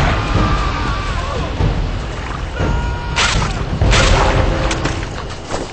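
Weapon blows land with sharp hits.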